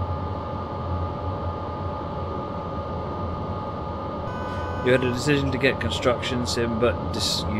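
A train engine hums and rumbles steadily.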